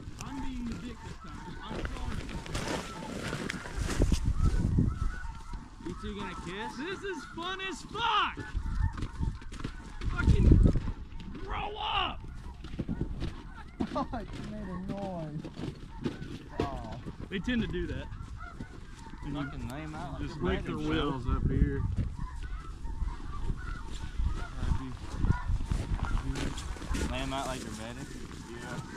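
Dry grass crunches underfoot as men walk.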